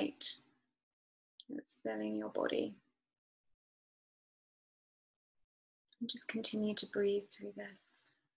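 A young woman speaks calmly and close to a microphone, with pauses.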